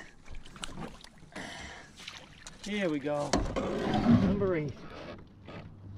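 A fish splashes and thrashes in the water close by.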